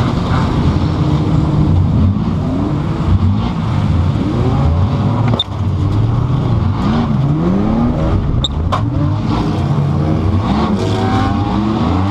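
A race car engine roars loudly, revving up and down close by.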